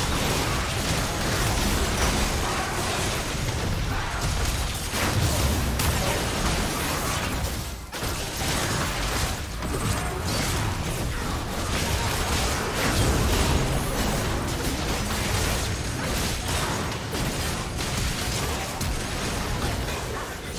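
Spell blasts, hits and explosions of a video game battle clash in quick succession.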